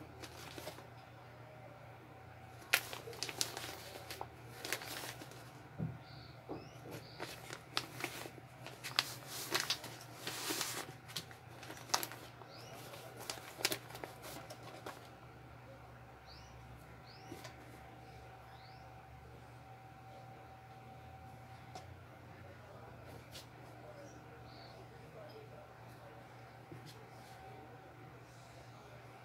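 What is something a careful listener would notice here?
Clothes rustle softly as hands fold and tuck them into a drawer.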